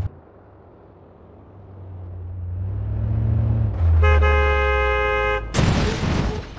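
A truck engine roars as it speeds closer.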